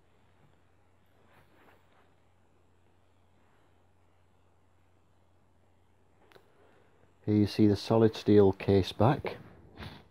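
Small metal watch parts click softly as fingers handle them.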